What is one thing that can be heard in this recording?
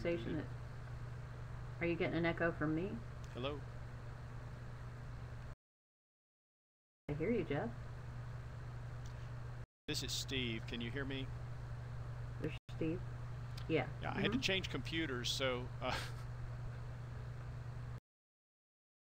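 A middle-aged woman speaks calmly and clearly, heard through a thin, slightly muffled connection that drops out in places.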